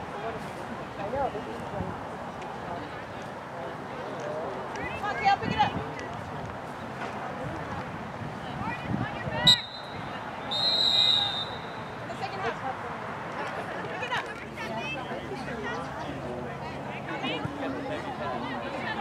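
Young women shout and call out across an open field, some distance away.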